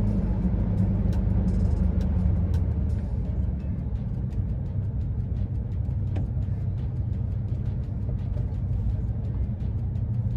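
A car engine rumbles steadily from inside the vehicle.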